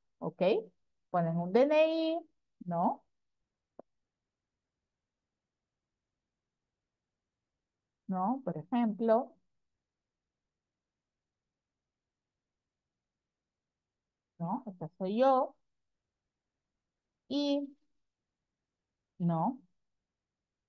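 A woman speaks calmly in short phrases through an online call.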